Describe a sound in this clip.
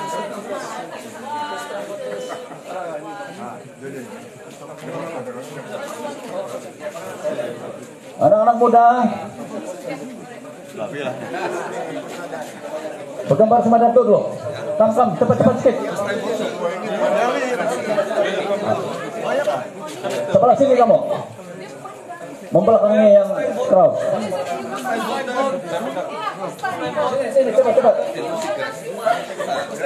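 A man speaks into a microphone over a loudspeaker, with animation.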